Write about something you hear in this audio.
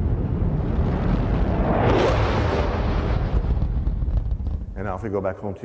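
A rocket engine roars with a deep, steady rumble.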